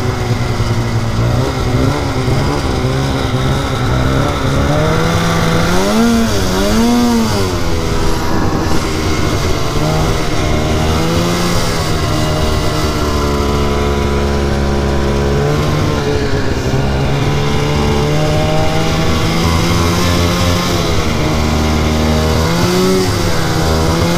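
A snowmobile engine drones loudly up close, its pitch rising and falling as the throttle changes.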